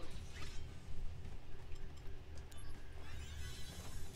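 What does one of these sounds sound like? A sword whooshes through the air in a quick slash.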